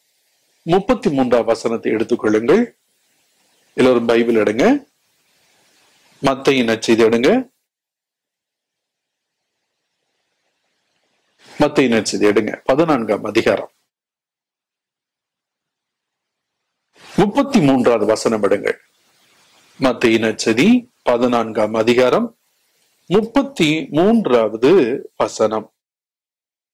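An elderly man speaks slowly and solemnly into a microphone, with long pauses.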